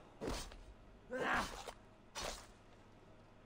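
Sword blows strike an animal in a short, loud fight.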